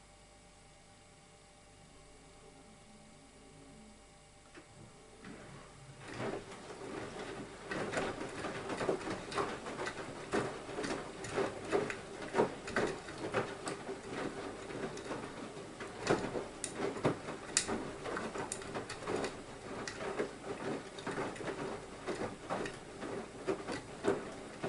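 A washing machine drum turns with a low steady hum.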